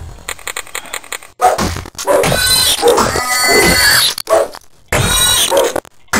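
Weapons strike a creature with heavy blows.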